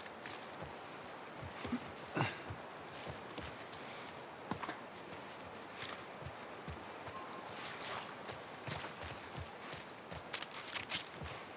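Footsteps tread through grass at a steady walking pace.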